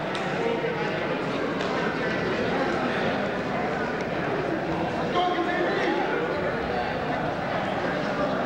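A crowd murmurs and calls out in an echoing gym.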